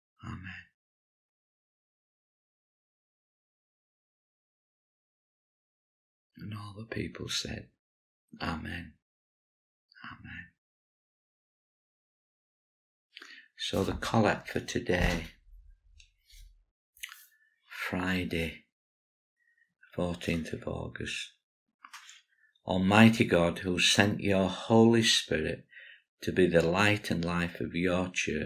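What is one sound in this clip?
An older man speaks calmly and slowly, close to a microphone, with long pauses.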